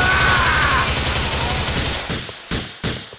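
A rifle fires rapid bursts that echo through a large hall.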